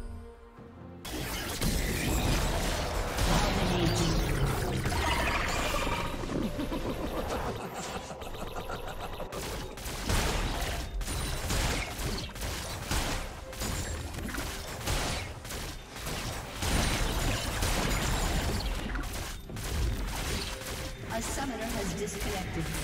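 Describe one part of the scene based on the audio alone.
Video game spell effects and weapon hits burst and clash rapidly.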